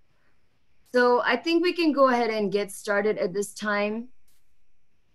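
Another young woman speaks calmly over an online call.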